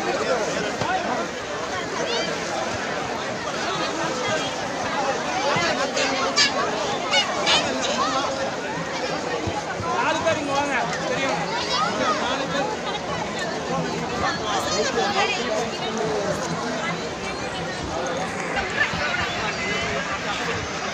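A crowd of men and women chatter and call out nearby, outdoors.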